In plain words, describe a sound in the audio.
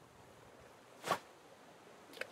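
A fishing line swishes out in a quick cast.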